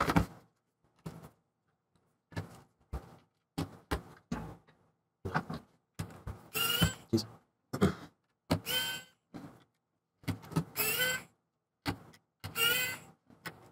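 A screwdriver clicks against small screws.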